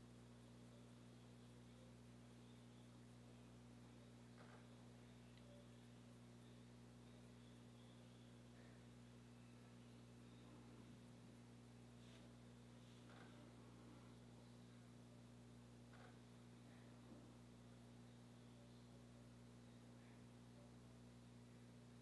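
A woman brushes her eyebrow with small soft strokes.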